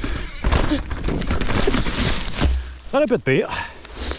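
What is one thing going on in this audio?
A bicycle crashes down onto the ground with a thud.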